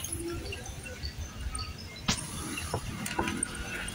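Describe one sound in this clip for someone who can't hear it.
A fountain splashes and hisses nearby.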